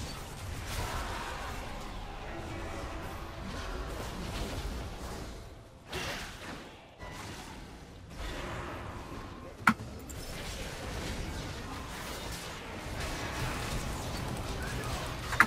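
Game sound effects of spells and attacks crackle and whoosh.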